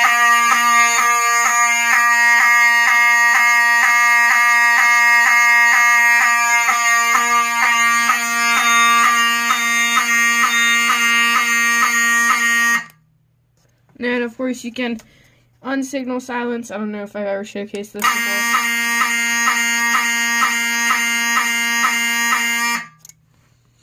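A fire alarm horn blares in a loud, rapid, steady pulse.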